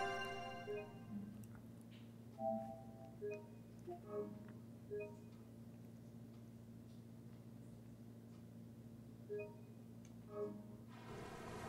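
Short electronic menu chimes beep.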